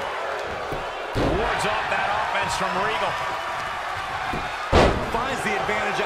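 Heavy bodies slam onto a ring mat with loud thuds.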